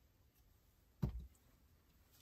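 A small object is set down on a table with a knock.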